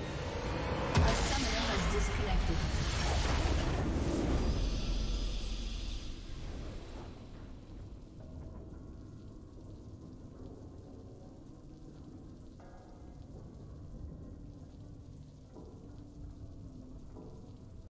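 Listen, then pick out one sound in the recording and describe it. A triumphant game fanfare swells and then fades.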